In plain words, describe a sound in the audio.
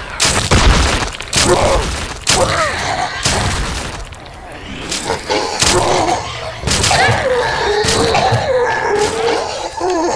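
A pump-action shotgun fires several shots.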